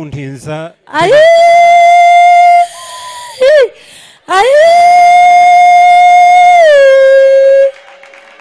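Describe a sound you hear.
A man sings long, held notes through a microphone.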